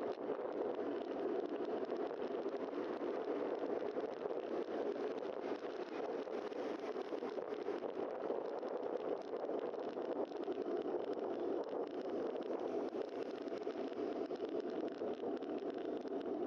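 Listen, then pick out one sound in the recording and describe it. Wind rushes steadily past close by, outdoors.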